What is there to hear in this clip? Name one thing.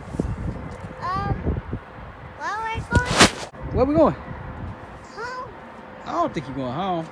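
A young child talks and laughs excitedly close by.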